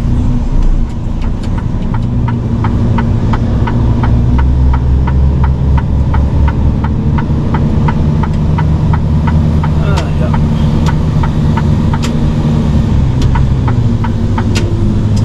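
A turn signal ticks in a fast, even rhythm.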